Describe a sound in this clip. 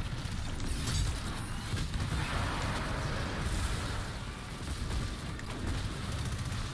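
Game weapons fire and energy blasts crackle.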